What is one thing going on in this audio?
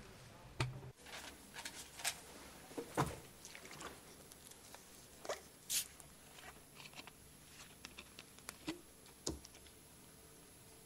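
Paper rustles softly as pages are turned.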